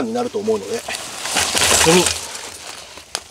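Lumps of charcoal clatter onto burning wood.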